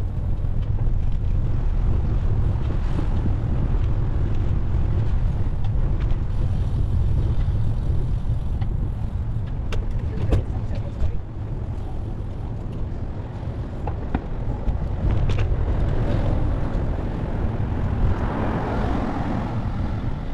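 Wind rumbles steadily past while riding outdoors.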